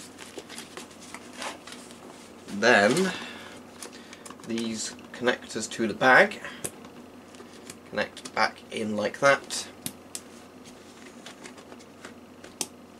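Stiff canvas rustles and scrapes as hands handle it.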